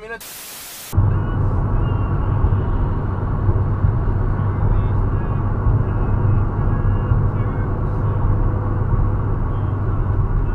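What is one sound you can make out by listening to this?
A car engine roars loudly.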